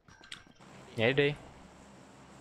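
A young man speaks loudly into a microphone.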